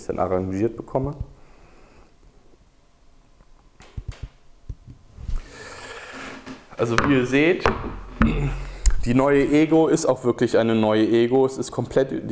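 A young man talks calmly and closely.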